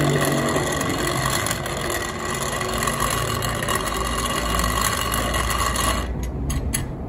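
An electric grinder motor whirs steadily, then stops.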